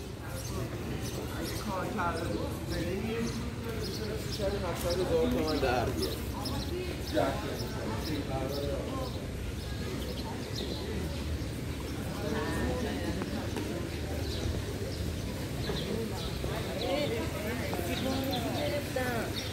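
People talk in the distance outdoors.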